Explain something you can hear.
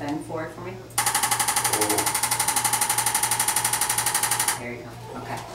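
A handheld device buzzes with a rapid, steady tapping.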